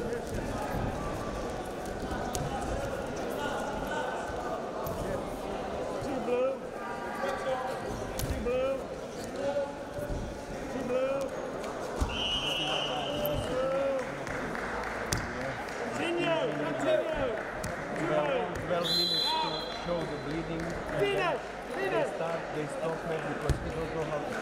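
Men shout loudly from around the mat in a large echoing hall.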